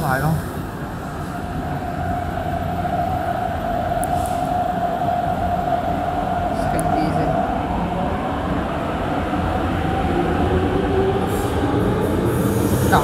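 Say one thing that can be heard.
A train's motors whine with a steady, rising and falling hum.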